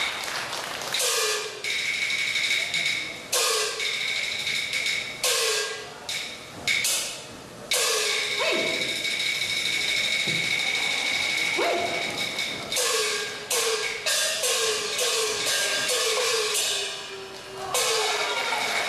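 Stage weapons clash sharply again and again, ringing briefly.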